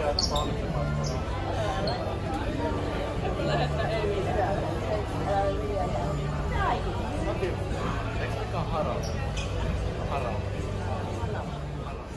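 A crowd of people chatters all around in a large echoing hall.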